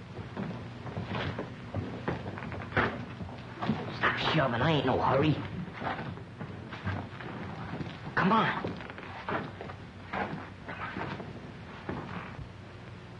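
A teenage boy speaks in a hushed, nervous voice.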